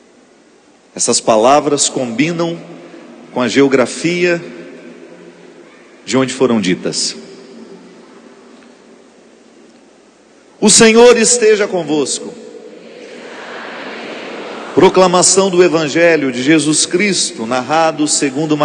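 A man speaks with animation over a microphone in a large echoing hall, pausing between phrases.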